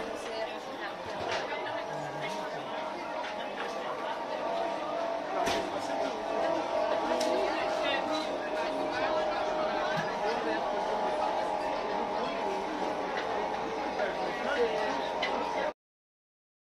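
A crowd of people chatters in the background outdoors.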